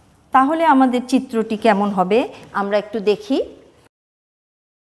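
A woman speaks clearly and steadily, as if teaching.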